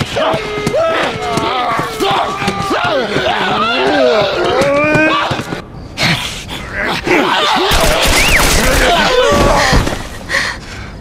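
A young girl sobs and cries close by.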